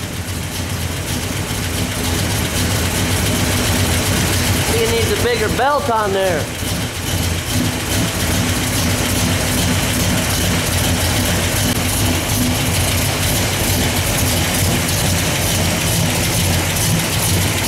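A car engine idles with a deep, steady, lumpy rumble close by.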